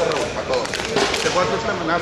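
A middle-aged man speaks firmly to a group.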